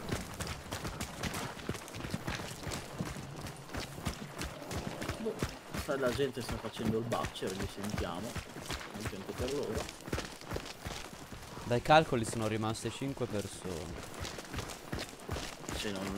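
Footsteps run quickly over dry ground and brush.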